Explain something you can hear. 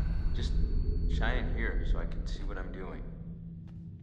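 A young man answers calmly and quickly.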